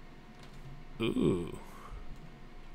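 A large creature lets out a short, falling roar.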